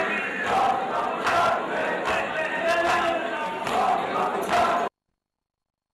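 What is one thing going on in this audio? A large crowd of men chants and murmurs outdoors.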